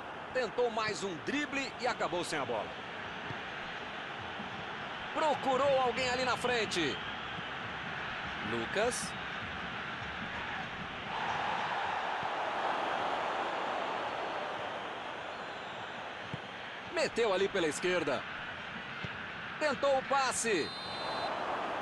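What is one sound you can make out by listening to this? A stadium crowd roars steadily, swelling for a while midway.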